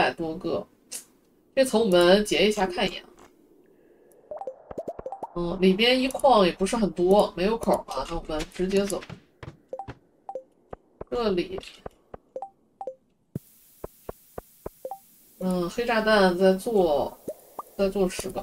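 Short menu clicks and blips of a game sound in quick bursts.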